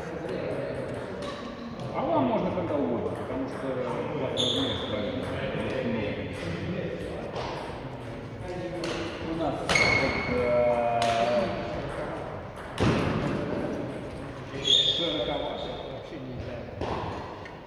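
Adult men and women talk and call out nearby in an echoing hall.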